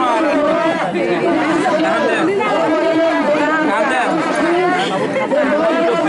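An elderly woman talks cheerfully up close.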